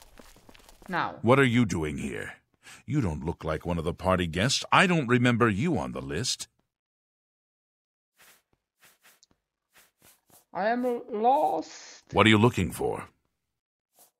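A man speaks gruffly and close, as if questioning someone.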